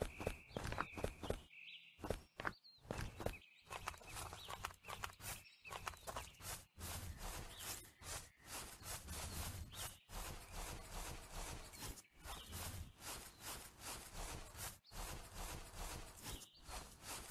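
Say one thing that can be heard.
Footsteps tread on grass at a steady walking pace.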